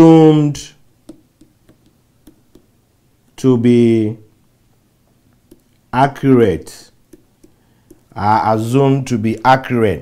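A man speaks slowly and calmly into a close microphone, pausing between phrases.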